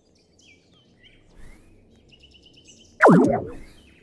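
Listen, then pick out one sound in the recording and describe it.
A game's alert chime sounds once.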